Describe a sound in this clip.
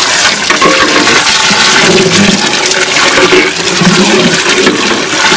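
Water pours in a steady stream into a pot of thick stew.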